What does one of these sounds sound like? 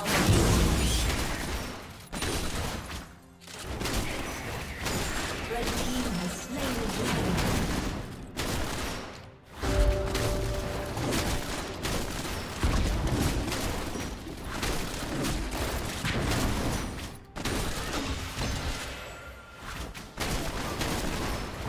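Video game fight sounds whoosh, clash and burst.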